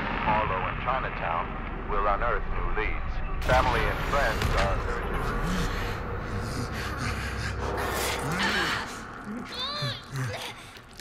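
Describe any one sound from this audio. A young woman screams in terror.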